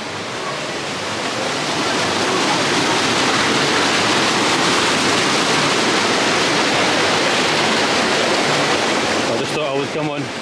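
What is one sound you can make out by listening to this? Water splashes and rushes loudly beside a turning water wheel.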